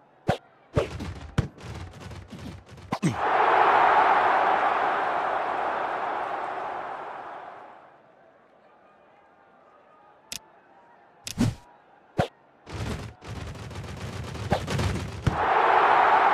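Players' pads thud and clatter as they collide.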